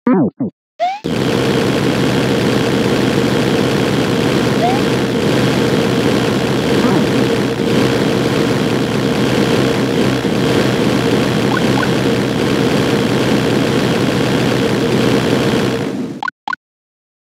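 A long stream of fire roars steadily in a video game.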